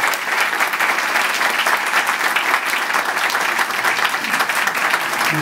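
A band plays guitars and accordion live.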